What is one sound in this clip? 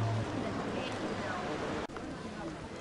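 Gentle waves lap against rocks by the shore.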